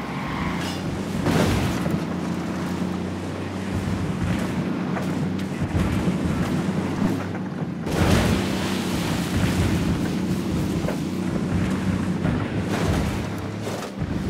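Branches and bushes brush and scrape against a truck.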